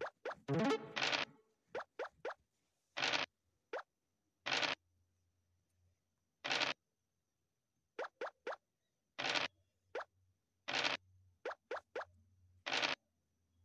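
Dice rattle as they roll.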